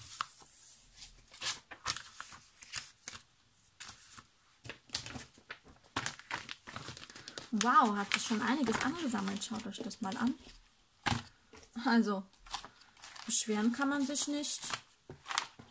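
Paper cards shuffle and rustle.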